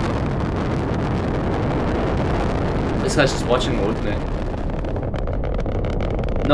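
A rocket roars steadily as it lifts off.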